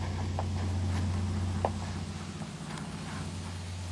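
A lace is pulled through the eyelets of a leather boot.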